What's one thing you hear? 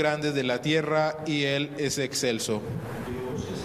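A young man sings through a microphone.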